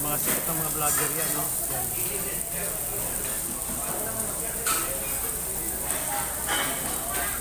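Men and women chat in a busy room.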